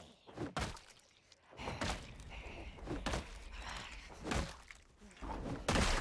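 Blows thud as a weapon strikes a body.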